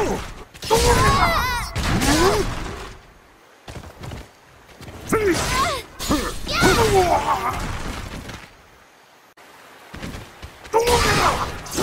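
A heavy blade strikes with a sharp metallic impact.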